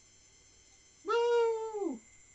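A man makes a loud drawn-out exclamation close to a microphone.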